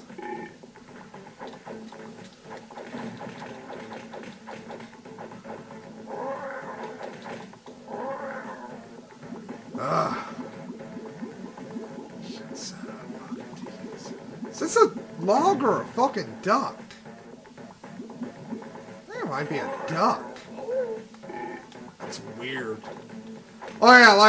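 Cartoon fighting sounds and splashes from a video game ring out.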